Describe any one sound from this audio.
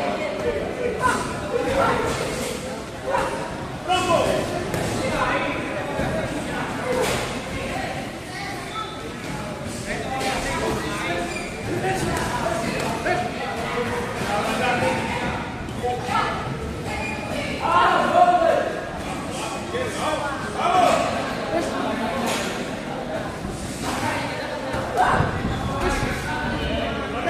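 A man calls out instructions loudly in an echoing room.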